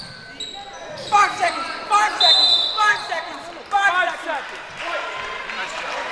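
Young men shout and cheer in an echoing gym.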